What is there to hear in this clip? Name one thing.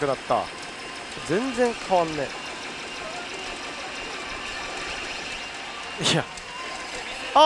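Metal balls rattle steadily through a pachinko machine.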